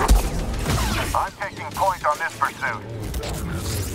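Blaster shots crack.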